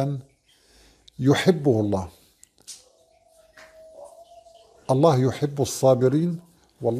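A middle-aged man speaks calmly and expressively into a close microphone, with pauses.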